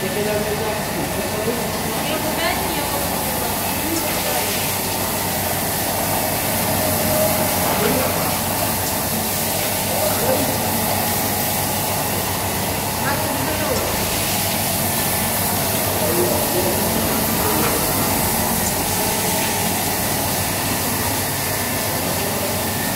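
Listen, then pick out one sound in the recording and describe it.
A machine whirs and hums steadily.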